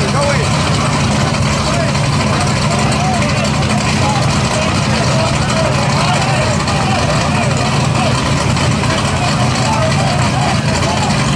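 Race car engines idle loudly with a deep, steady rumble.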